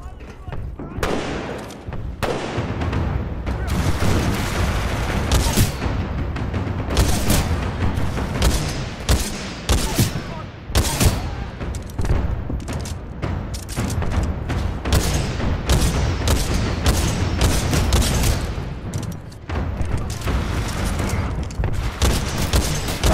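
Automatic rifle fire rattles in quick bursts.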